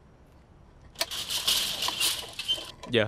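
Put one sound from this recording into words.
A metal door lock rattles and clanks.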